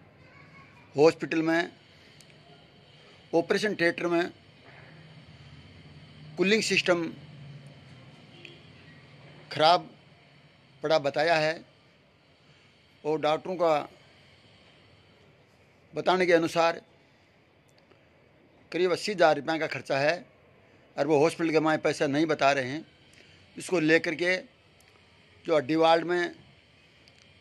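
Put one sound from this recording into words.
A middle-aged man speaks in short, calm phrases close to a microphone, with pauses between them.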